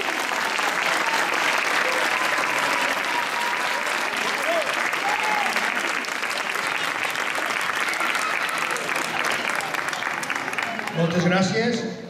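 An audience applauds and claps loudly outdoors.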